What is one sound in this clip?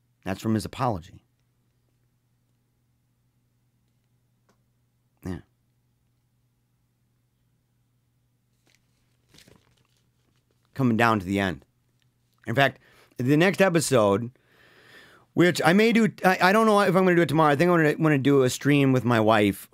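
A man speaks with animation, close to a microphone, with pauses.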